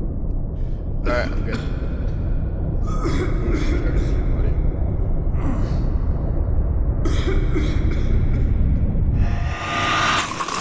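A young man groans and speaks in a strained voice, close by.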